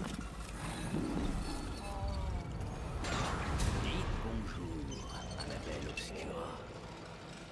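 A game's eerie music and sound effects play.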